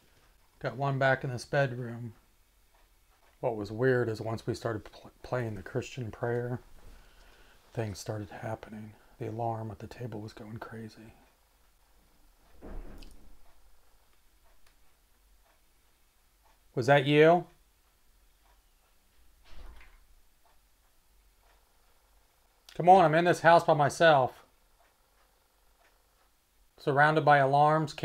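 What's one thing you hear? A man speaks quietly and close by, in short bursts with pauses.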